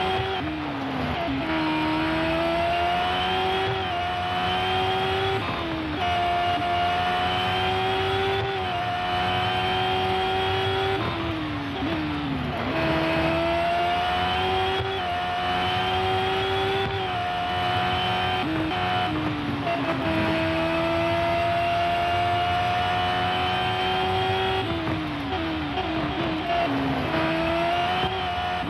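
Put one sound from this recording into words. A racing car engine revs high and climbs through the gears.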